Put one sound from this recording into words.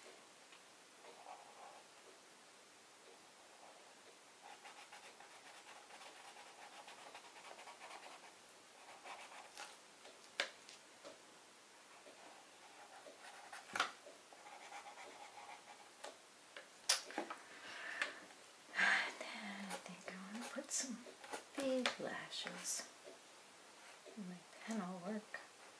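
A felt-tip marker scratches across paper.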